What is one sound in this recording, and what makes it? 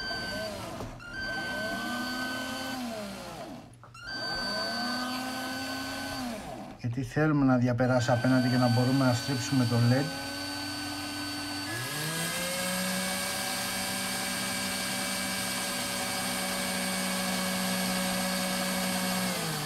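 An electric drill whirs in short bursts, then runs steadily.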